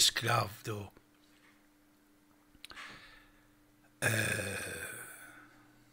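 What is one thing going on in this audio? An elderly man speaks into a close microphone.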